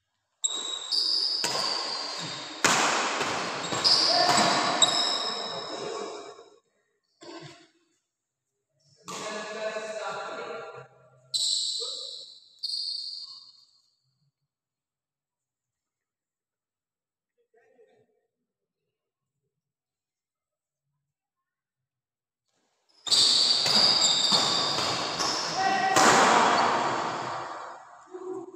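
Badminton rackets smack a shuttlecock back and forth in a rally.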